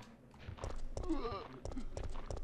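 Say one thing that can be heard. A zombie groans close by.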